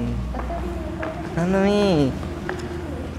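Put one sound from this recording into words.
A child calls out.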